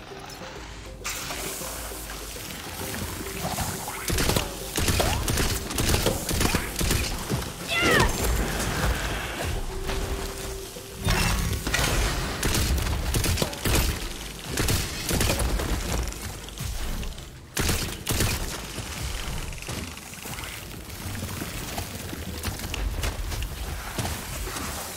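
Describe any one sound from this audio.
Guns fire in rapid bursts with loud blasts.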